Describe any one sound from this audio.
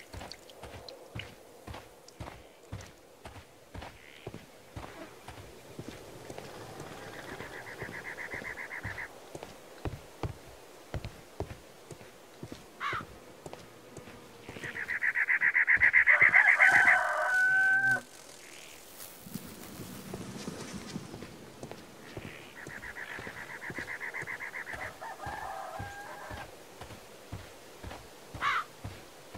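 Footsteps tread steadily on stone paving.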